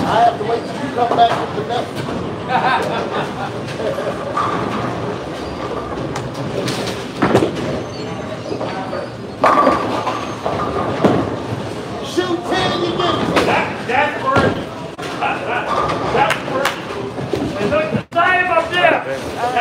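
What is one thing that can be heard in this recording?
Bowling balls roll down wooden lanes with a low rumble.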